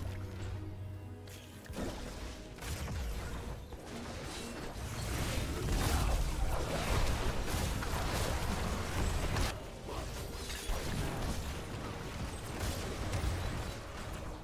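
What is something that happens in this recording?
Game spells and attacks crackle, zap and boom in a busy battle.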